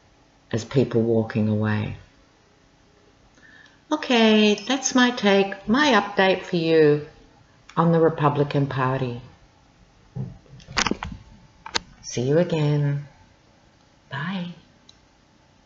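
A woman speaks calmly and with animation, close to a microphone.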